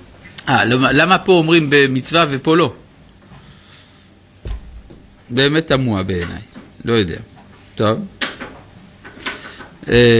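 An older man speaks calmly into a nearby microphone, pausing between phrases.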